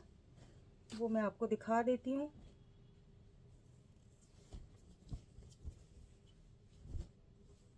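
Cloth rustles softly as a hand lifts and folds it.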